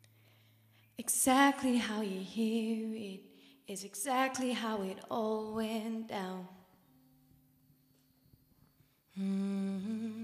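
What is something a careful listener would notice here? A young woman speaks into a microphone, heard through loudspeakers in a large hall.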